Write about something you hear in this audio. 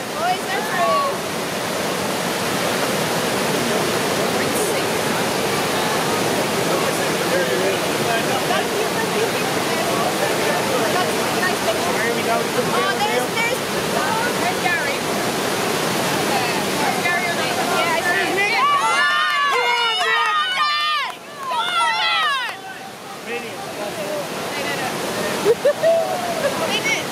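Rushing water roars steadily over a weir.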